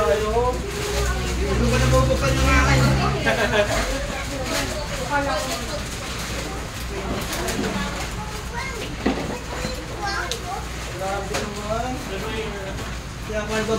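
Several women talk and chatter close by.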